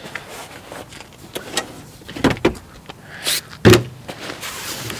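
A plastic cooler knocks and thumps as it is lifted out.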